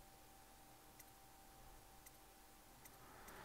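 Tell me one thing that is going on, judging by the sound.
Soft interface clicks sound as a menu selection moves.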